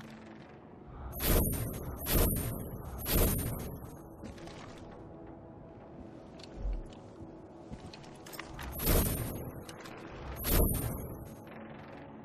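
Loose objects rattle as they are picked up.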